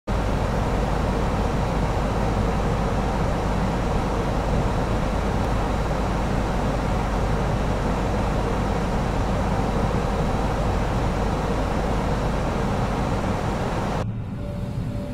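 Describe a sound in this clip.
Airflow roars steadily inside the cockpit of an Airbus A320 airliner in flight.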